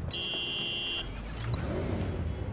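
A motorcycle engine starts and revs.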